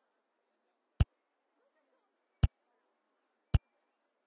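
A game interface gives sharp clicks.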